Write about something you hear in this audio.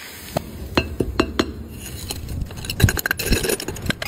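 A metal hook scrapes and digs through gritty sand.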